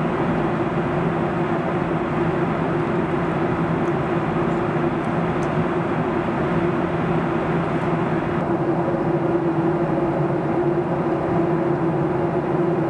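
A jet engine roars steadily inside an airliner cabin.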